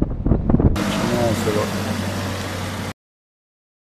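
A van engine idles.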